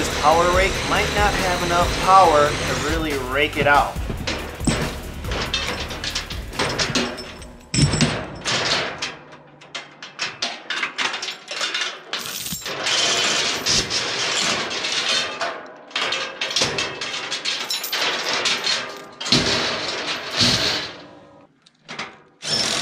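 Metal chains rattle and clink.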